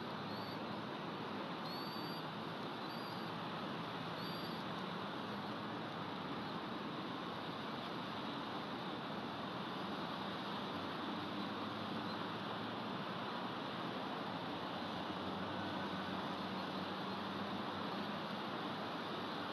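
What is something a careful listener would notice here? Wind rushes steadily through pine branches outdoors.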